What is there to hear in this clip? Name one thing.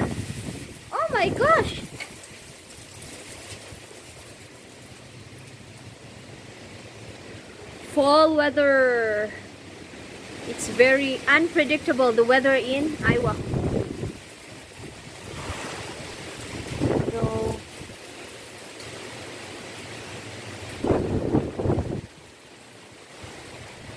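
Wind gusts through the leaves of a tree outdoors.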